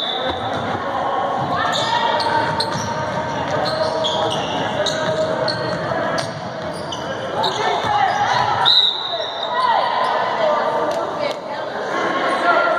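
Spectators chatter nearby in an echoing gym.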